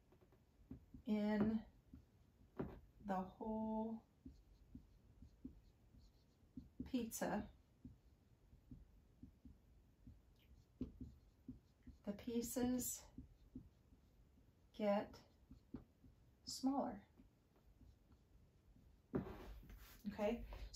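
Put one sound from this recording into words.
A middle-aged woman speaks calmly in short phrases, close by.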